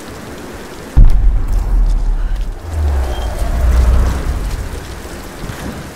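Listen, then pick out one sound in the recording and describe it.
A waterfall rushes and roars nearby.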